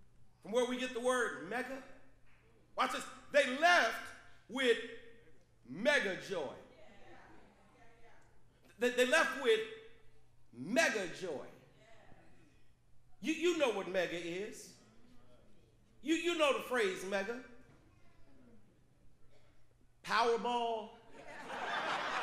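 A man preaches with passion into a microphone, in short phrases with pauses, in a large echoing hall.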